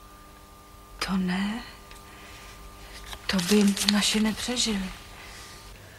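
A woman speaks in a startled voice.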